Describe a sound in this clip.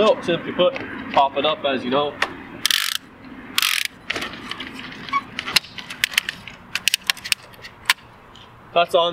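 A bicycle rack clicks and clacks as a bike is fastened onto a car roof.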